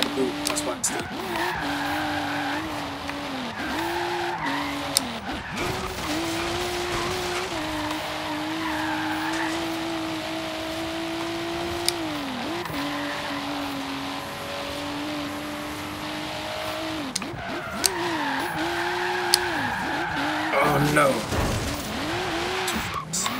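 A car engine drones steadily and rises and falls in pitch as the car speeds along.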